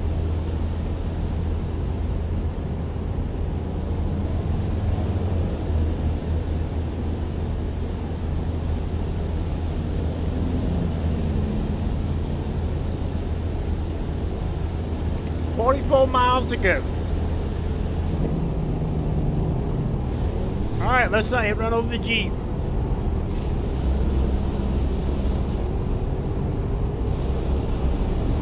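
A truck engine hums steadily at highway speed.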